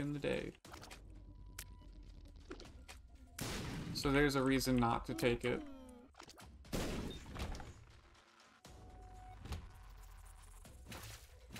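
Video game sound effects pop and splat in quick bursts.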